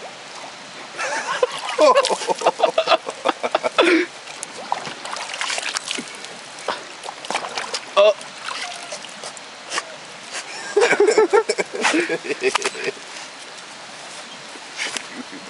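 A dog laps water noisily from a metal bucket.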